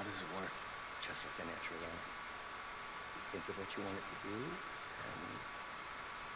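A middle-aged man answers calmly.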